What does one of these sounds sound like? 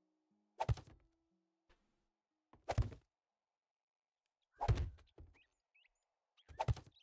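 Heavy wooden knocks thud a few times, each with a short rattle.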